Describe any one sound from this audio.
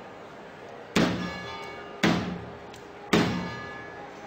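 Heavy knocks strike a large wooden door.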